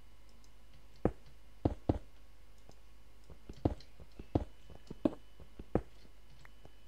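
A pickaxe knocks sharply against stone, breaking blocks.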